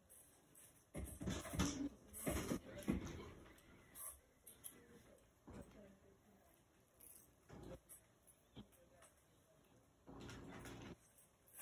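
A woman chews food with loud smacking sounds close by.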